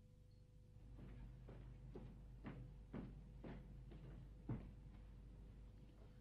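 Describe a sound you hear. Footsteps tread softly down stairs.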